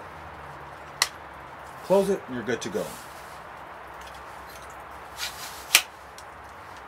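A telescoping pole clicks as its clamps are worked.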